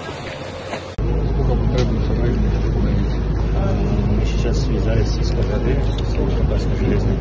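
An elderly man speaks calmly into microphones outdoors.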